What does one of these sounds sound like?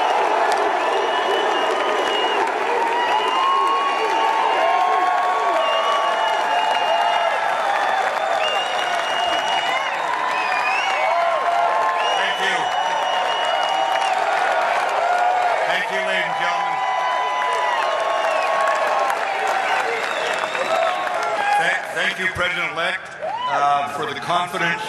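A large crowd cheers and claps loudly in a big echoing hall.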